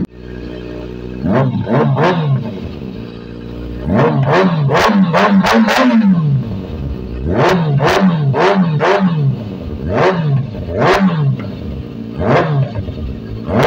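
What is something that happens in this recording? A motorcycle engine revs sharply again and again, roaring through the exhaust.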